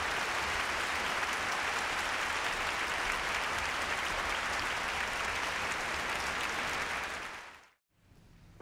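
An audience applauds loudly in a large hall, then the applause fades out.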